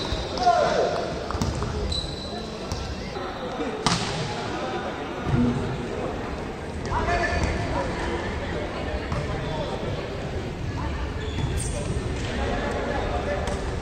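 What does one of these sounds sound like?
Spectators and players cheer and shout in a large echoing hall.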